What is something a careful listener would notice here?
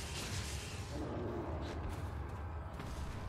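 A huge creature roars deeply.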